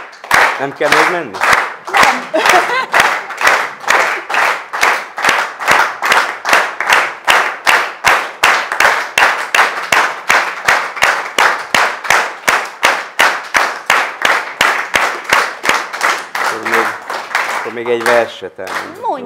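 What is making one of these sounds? An audience claps steadily in time.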